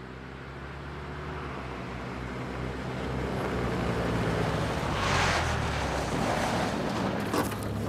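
Tyres crunch over leaves and gravel.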